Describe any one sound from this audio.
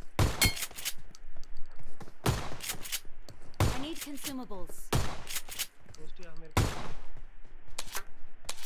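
Rapid bursts of rifle gunfire crack out again and again.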